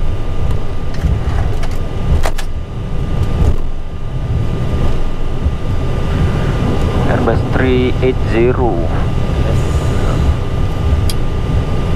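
A jet engine hums steadily.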